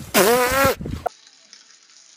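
A cat meows loudly close by.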